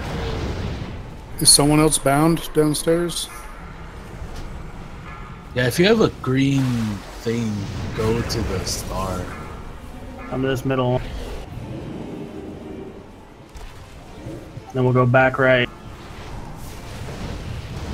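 Magic spells crackle and whoosh in a fantasy battle.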